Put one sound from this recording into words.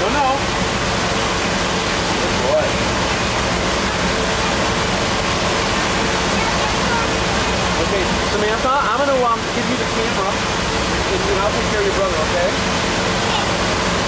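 Water churns and rushes in a boat's wake.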